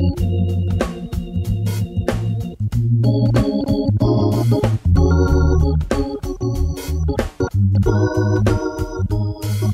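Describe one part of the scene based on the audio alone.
An organ plays chords with a bouncy rhythm.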